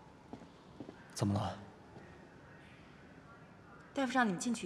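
A young man asks a short question calmly.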